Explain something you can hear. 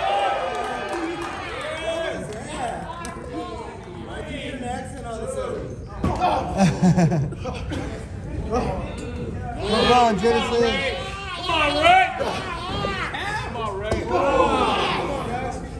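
A crowd of adults shouts and cheers loudly nearby in an echoing hall.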